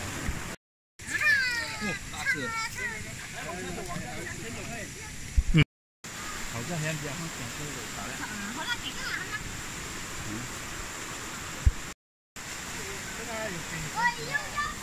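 Shallow stream water flows and trickles.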